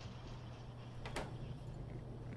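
A short click sounds as a menu closes.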